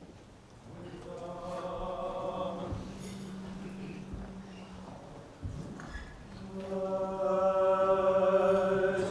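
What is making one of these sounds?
Men chant together in a large echoing hall.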